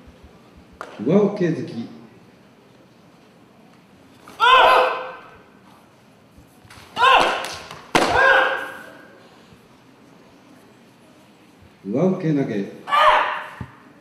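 Men let out sharp, loud shouts in a large echoing hall.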